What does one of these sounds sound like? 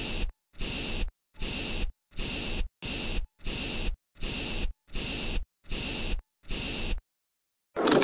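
A spray bottle hisses in short, repeated bursts.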